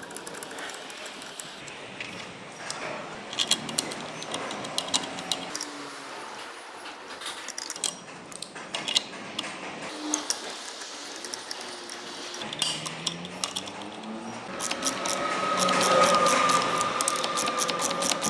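Metal tools clink and tap against an engine part.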